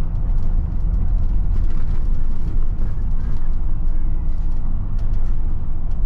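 A van drives past close by in the other direction.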